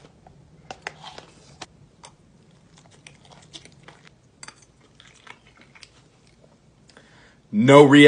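A young man crunches and chews candy close by.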